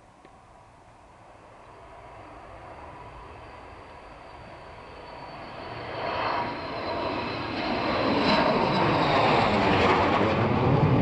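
A jet plane roars as it approaches, growing steadily louder until it is close overhead.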